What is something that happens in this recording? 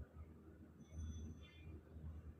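Broth pours into a pot of meat curry.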